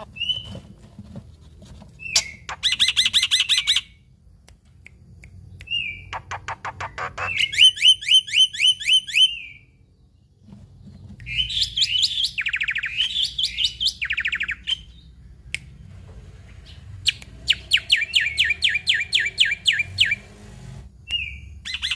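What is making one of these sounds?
A caged bird sings loud, fast, repeated chirping trills close by.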